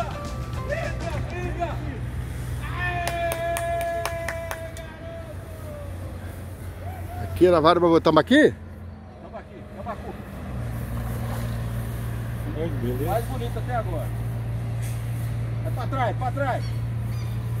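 Men talk and shout excitedly outdoors.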